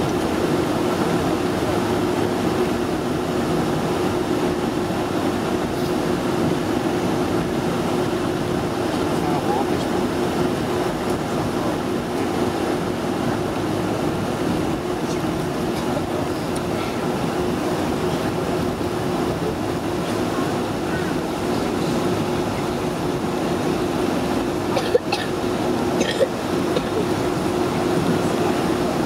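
An aircraft rumbles as it taxis along the ground.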